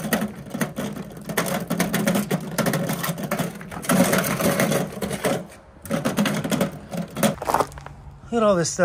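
A magnetic sweeper rolls and rattles over loose gravel.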